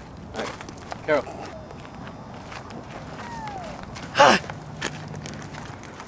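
Footsteps crunch on dry ground.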